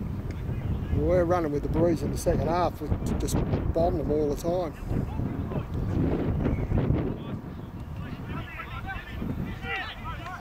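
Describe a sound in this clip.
Young men shout to each other in the distance across an open field.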